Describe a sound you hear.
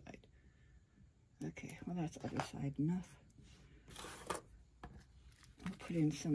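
Small plastic pieces click and tap on a hard surface.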